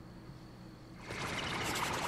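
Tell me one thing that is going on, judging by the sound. A whooshing magical rush swells up.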